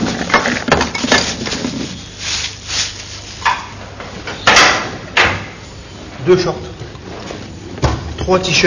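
Men talk in a room.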